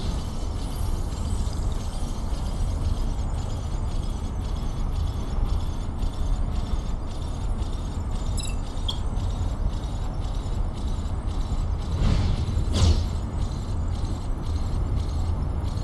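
Wind rushes steadily past at high speed.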